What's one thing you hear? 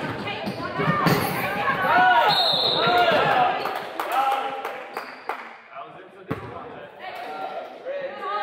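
Children's shoes squeak and thud on a wooden floor in a large echoing hall.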